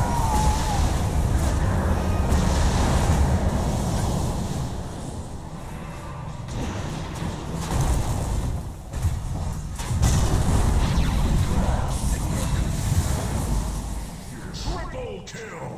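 Spell effects and combat sounds crash and whoosh in quick succession.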